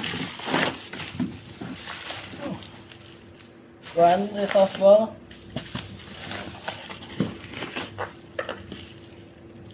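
Bubble wrap crinkles as it is handled.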